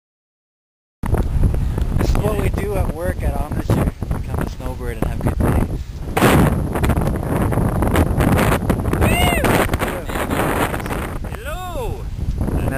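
Wind buffets the microphone with a low rumble.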